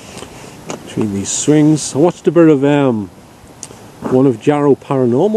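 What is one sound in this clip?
A middle-aged man speaks quietly close by.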